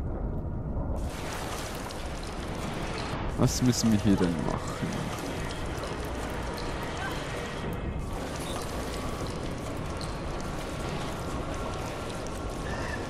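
Water sloshes and laps as a swimmer moves through it.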